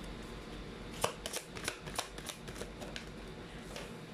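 Playing cards riffle and flick as a deck is shuffled.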